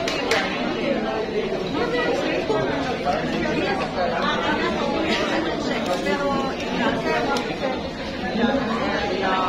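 Several men and women talk at once in a crowded, echoing room.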